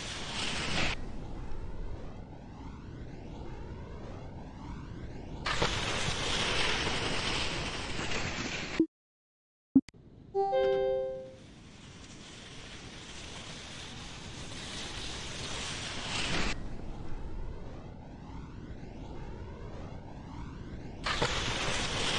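Wind rushes past a ski jumper in flight.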